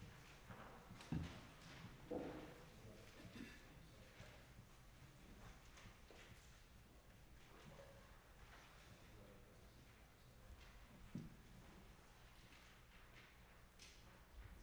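Dishes and objects clink and knock softly on a table in a quiet, echoing room.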